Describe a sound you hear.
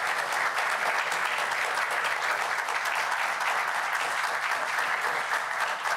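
A crowd applauds steadily in a large room.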